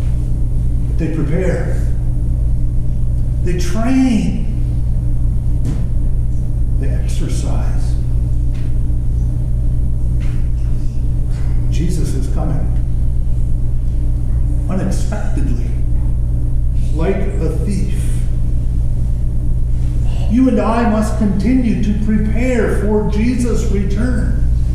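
A man speaks calmly into a microphone in an echoing room, with long pauses.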